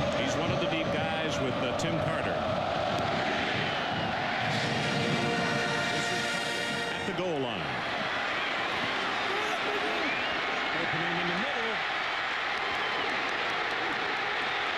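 A large crowd roars and cheers in an open stadium.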